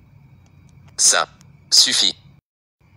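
Two short electronic sounds play in quick succession.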